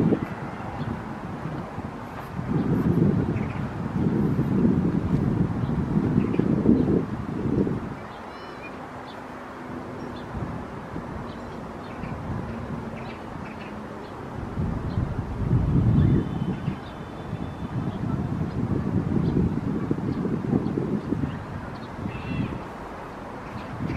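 Wind gusts buffet the microphone outdoors, rising and falling.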